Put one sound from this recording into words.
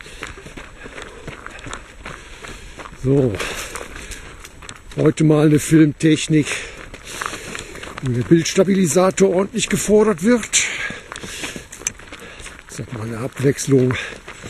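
Runners' footsteps patter on a gravel path.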